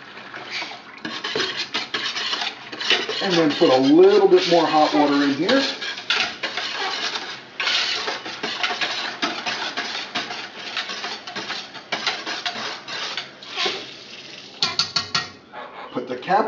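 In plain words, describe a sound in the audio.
A whisk scrapes and clatters against a metal pot.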